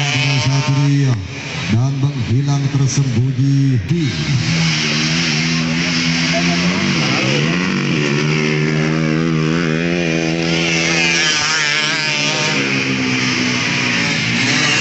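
Dirt bike engines rev and whine loudly, rising and falling in pitch.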